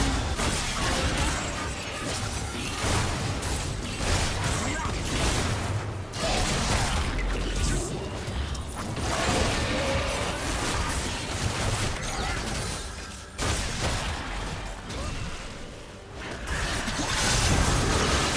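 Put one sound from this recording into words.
Magical blasts and hits crackle and thump in a fierce battle.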